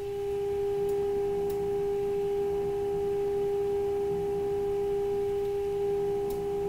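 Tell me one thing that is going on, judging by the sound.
An old radio plays a steady high tone from its speaker.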